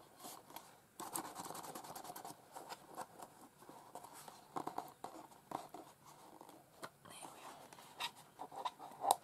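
Hands rub and smooth paper flat.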